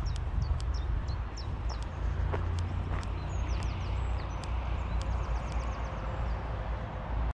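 Wind buffets loudly across the microphone outdoors.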